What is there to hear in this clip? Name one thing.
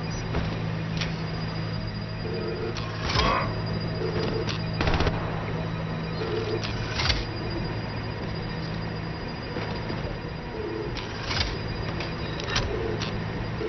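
Plastic bricks click and snap into place.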